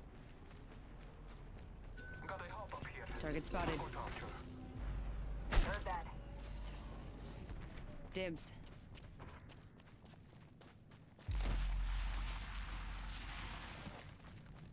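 Footsteps crunch quickly over sand and gravel.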